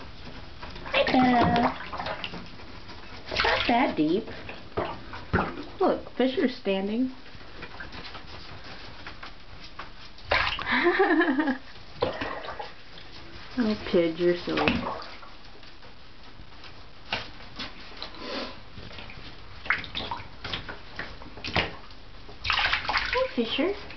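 Small animals paddle and splash in shallow water.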